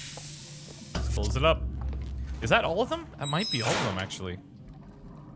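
A heavy metal door mechanism clanks and rumbles open.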